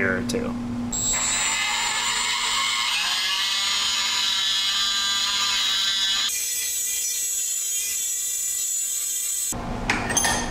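An electric screwdriver whirs as it drives a screw.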